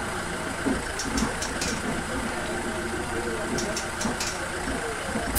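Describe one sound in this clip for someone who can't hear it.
Footsteps clack on the steps of a bus as passengers board.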